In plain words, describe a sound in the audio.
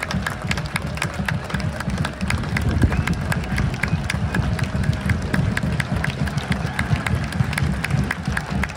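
A large crowd of fans chants loudly and steadily in an open stadium.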